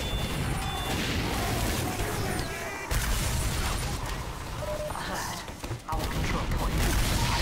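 Rockets explode with heavy booms.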